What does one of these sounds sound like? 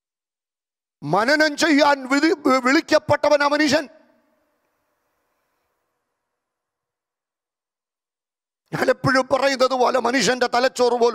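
A man preaches with animation into a microphone, with pauses between phrases.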